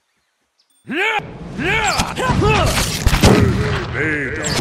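Blades clash and strike in a sudden loud fight.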